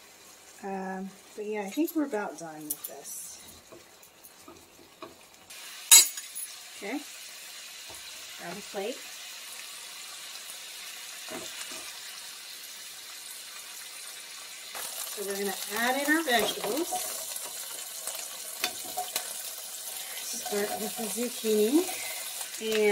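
Food sizzles in a hot frying pan.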